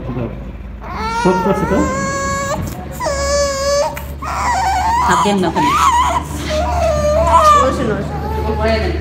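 A baby cries loudly close by.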